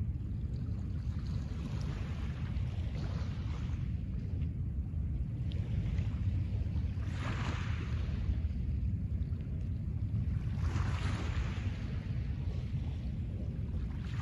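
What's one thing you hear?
Small waves lap gently onto a pebble shore at a slow, even pace.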